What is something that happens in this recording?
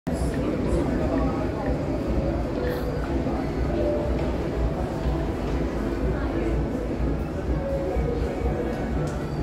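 Backing music plays from a small amplifier.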